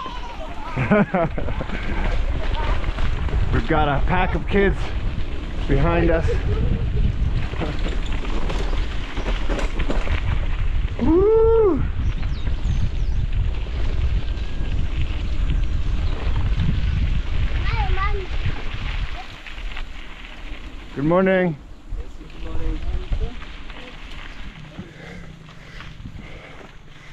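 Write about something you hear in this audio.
Mountain bike tyres roll and crunch over a dirt trail.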